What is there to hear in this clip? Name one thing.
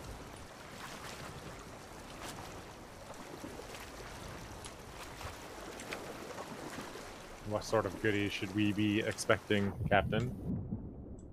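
Waves wash and surge around a ship at sea.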